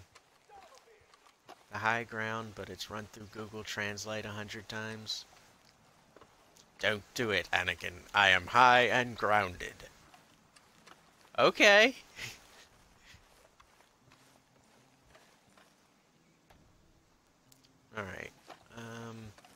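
Footsteps crunch on grass and dry dirt.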